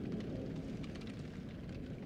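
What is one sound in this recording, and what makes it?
A fire crackles in a fireplace.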